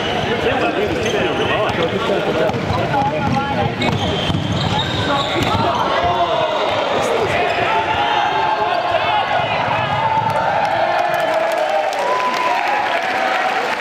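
A crowd of young people chatters and shouts across a large echoing hall.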